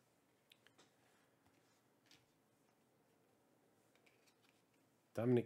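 Trading cards slide and rustle against each other in a person's hands.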